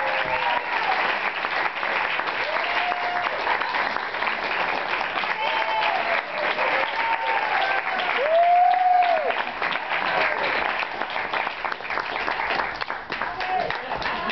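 High heels tap on a wooden stage floor.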